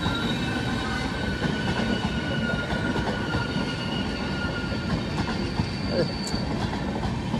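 Wheels squeal with a high, steady whine that fades out.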